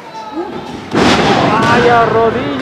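A body slams heavily onto a ring mat.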